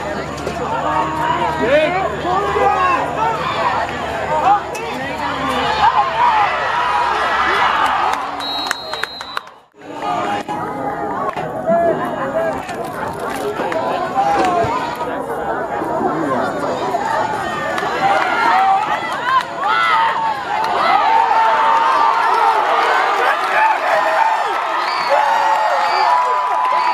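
A crowd cheers loudly from the stands.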